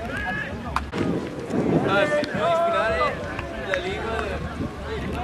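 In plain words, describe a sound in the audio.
Young men chat casually nearby in the open air.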